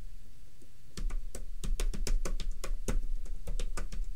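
A computer keyboard clatters with quick typing.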